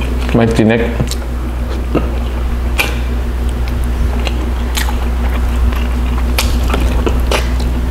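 A man chews and slurps food loudly close up.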